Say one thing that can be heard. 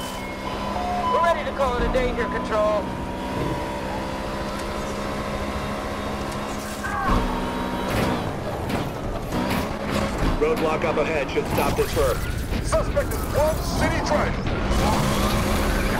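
Police sirens wail and rise and fall.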